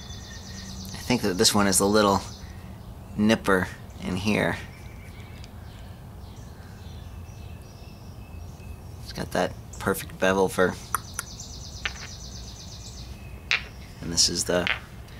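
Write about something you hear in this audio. A man speaks calmly close to the microphone, in short bursts.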